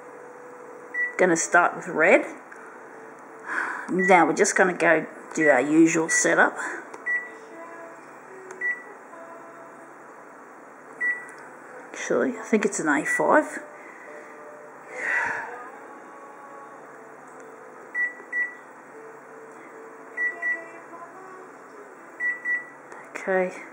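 A copier's touch panel gives short soft beeps as it is pressed.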